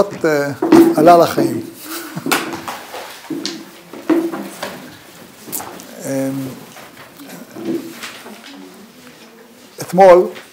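An elderly man speaks warmly and animatedly close to a microphone.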